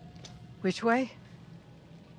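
A woman asks a short question nearby.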